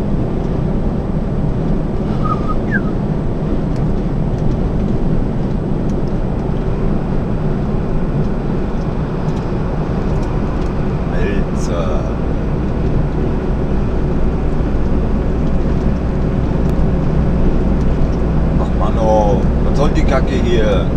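A diesel truck drones at motorway speed, heard from inside the cab.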